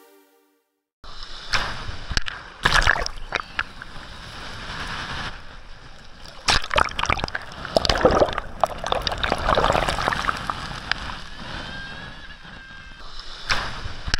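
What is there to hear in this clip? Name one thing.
Small waves splash and wash up close by.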